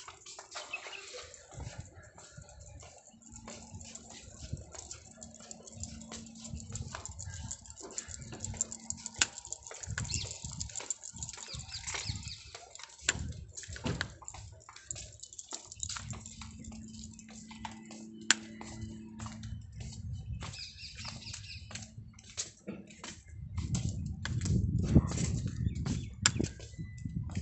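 Footsteps tap on paving stones outdoors.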